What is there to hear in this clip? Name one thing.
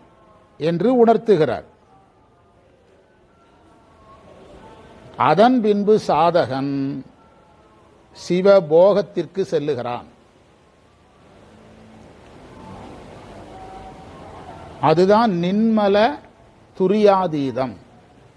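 A middle-aged man speaks into a microphone in short bursts with pauses.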